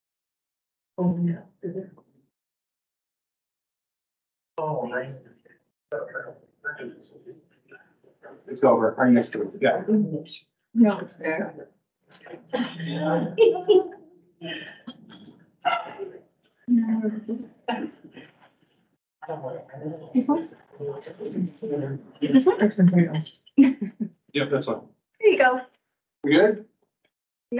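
A woman speaks calmly through a microphone over an online call.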